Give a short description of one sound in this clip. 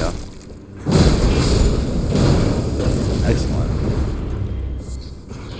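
Fire bursts and roars loudly in a series of blasts.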